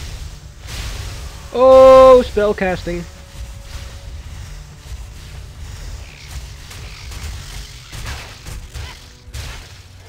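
Magic spells crackle and zap in a game.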